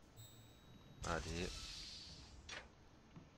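A metal door slides open.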